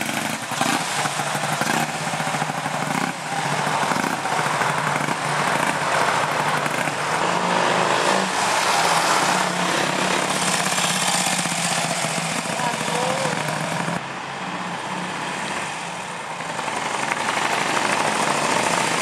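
A motorcycle engine putters steadily, rising and falling as the bike rides away and passes close by.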